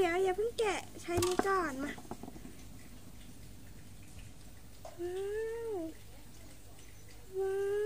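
A young girl speaks close by in a high, lively voice.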